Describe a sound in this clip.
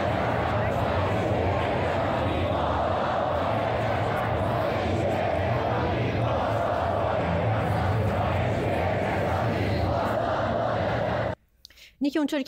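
A crowd chants loudly outdoors.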